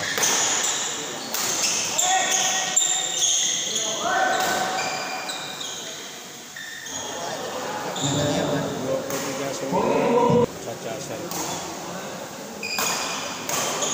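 Sports shoes squeak sharply on the court floor.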